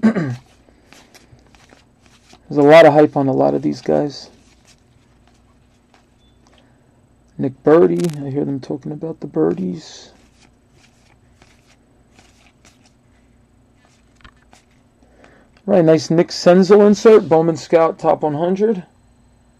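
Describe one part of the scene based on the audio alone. Trading cards slide and flick against each other as a hand shuffles through them.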